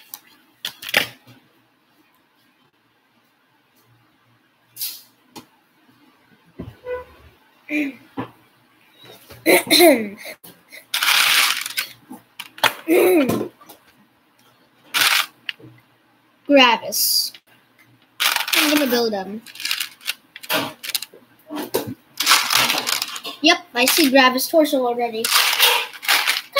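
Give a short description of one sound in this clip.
Plastic toy bricks click and rattle.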